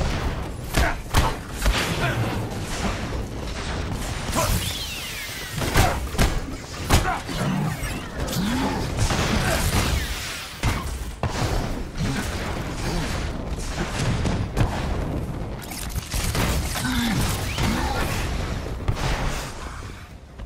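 Energy blasts fire with sharp zaps and bangs.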